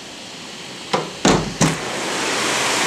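A window latch clicks and the window swings open.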